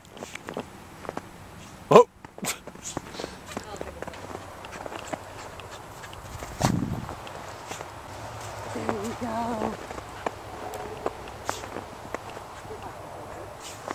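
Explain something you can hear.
A dog's paws crunch through snow as it runs.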